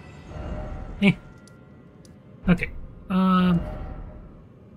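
A short chime sounds as a map opens.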